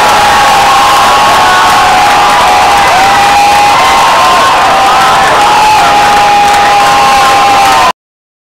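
A rock band plays loudly through a large arena sound system.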